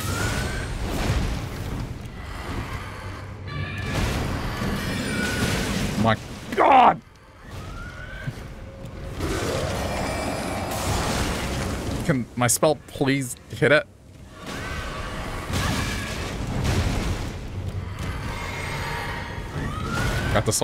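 Magic spells burst with a whooshing roar.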